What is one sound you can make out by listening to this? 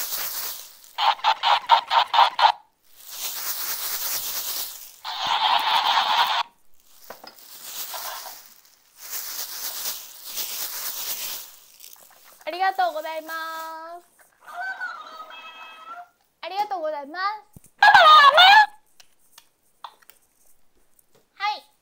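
A young girl speaks in a high, playful voice close by.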